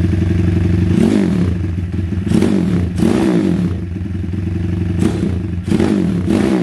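A small motorcycle engine revs up briefly several times.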